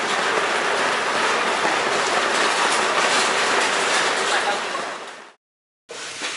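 Liquid pours and splashes steadily onto a surface.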